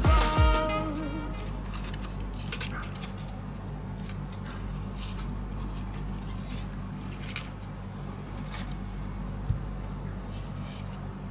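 Paper rustles and crinkles as hands fold and handle it.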